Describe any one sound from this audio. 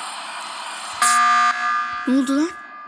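A shrill electronic alarm sounds briefly.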